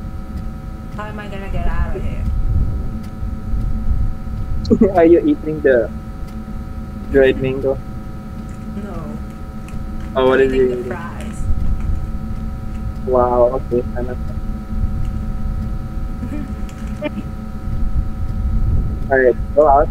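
A young woman speaks in short bursts through a microphone.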